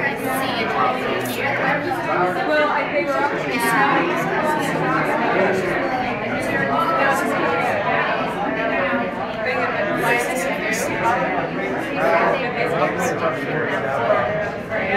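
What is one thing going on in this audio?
A crowd of children and adults chatter and call out excitedly close by.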